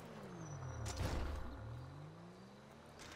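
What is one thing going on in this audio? A bicycle crashes onto the road with a thud.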